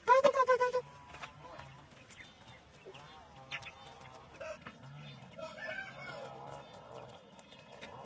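Ducks quack softly.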